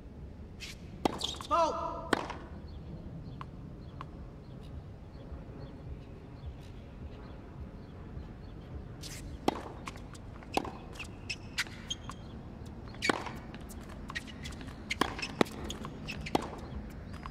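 A tennis ball is struck with a racket with sharp pops.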